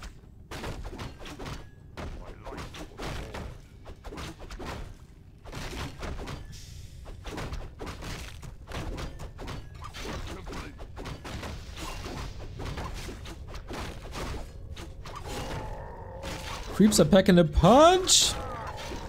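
Swords clash and spells burst in a fight between small game figures.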